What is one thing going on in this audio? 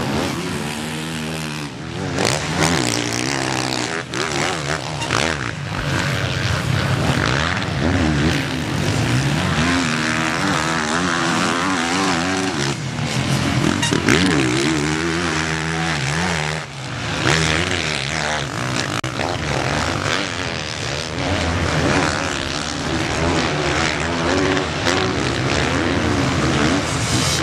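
A motocross bike engine revs and roars loudly, rising and falling in pitch.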